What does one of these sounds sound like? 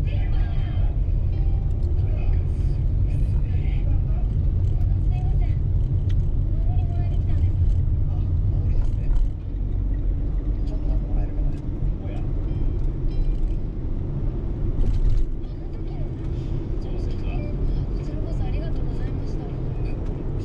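A vehicle's engine drones steadily from inside the cab.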